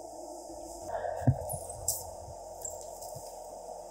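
A bag rustles close by.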